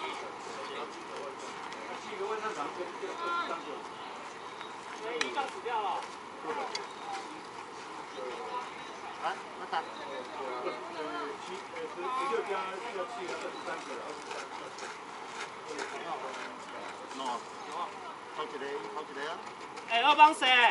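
Men talk and call out across an open ballfield.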